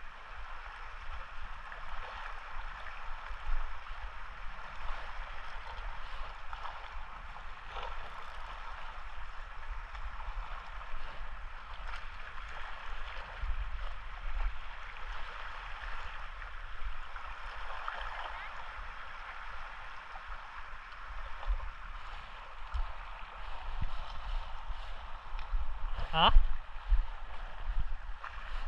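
Small waves lap gently against rocks.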